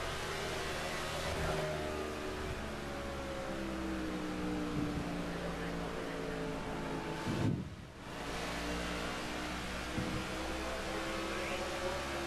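Other race car engines whine nearby as cars pass.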